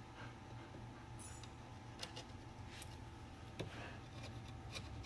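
A metal blade scrapes and taps against wood.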